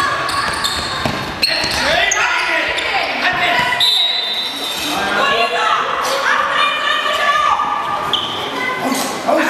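A crowd of spectators cheers and shouts loudly in a large echoing hall.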